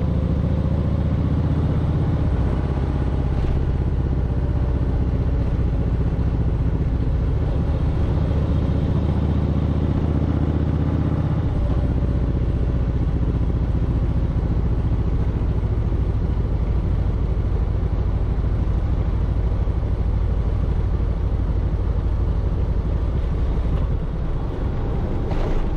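A motorcycle engine rumbles steadily up close while riding.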